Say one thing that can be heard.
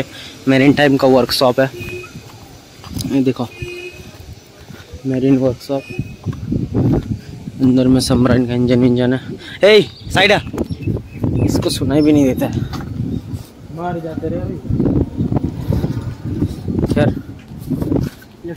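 A young man talks calmly close to the microphone.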